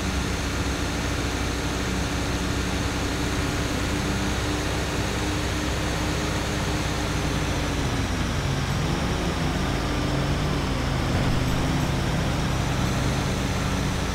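A heavy truck engine rumbles steadily, dropping and rising in pitch as it drives.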